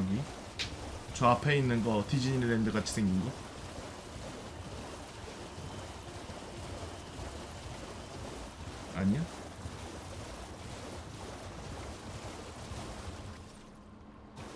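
A horse splashes through shallow water at a gallop.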